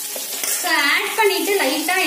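A metal spoon scrapes against a frying pan.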